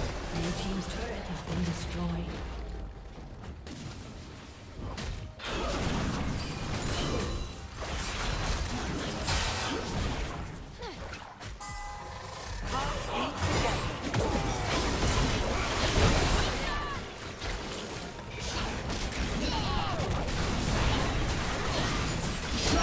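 Game spell effects whoosh and crash during a fight.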